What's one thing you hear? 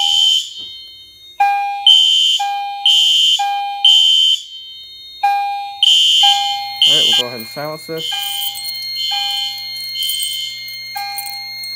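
A fire alarm horn blares in loud, repeating bursts.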